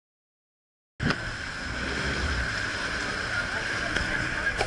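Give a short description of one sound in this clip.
Water churns and splashes behind a moving boat.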